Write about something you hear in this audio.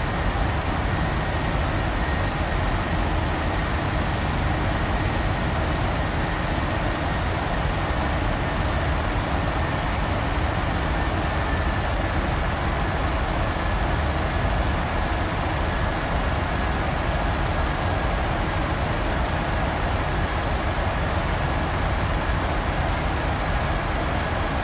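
Jet engines roar steadily in a cockpit during flight.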